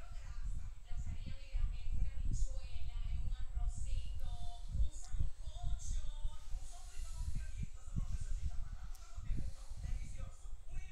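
An elderly man speaks calmly into a headset microphone, close up.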